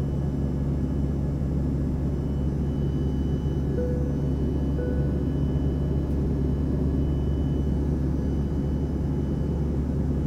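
A jet airliner's engines drone steadily, heard from inside the cabin.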